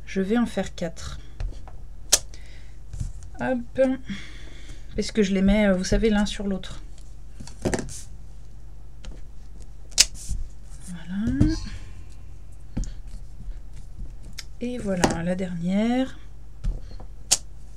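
A rubber stamp taps down onto paper.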